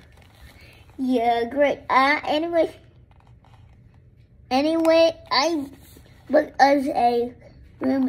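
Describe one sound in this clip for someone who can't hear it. A young boy speaks loudly and with animation close by.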